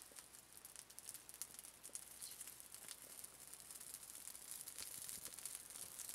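Small twigs crackle and pop as a fire catches.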